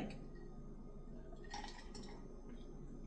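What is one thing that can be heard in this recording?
A woman sips water from a glass.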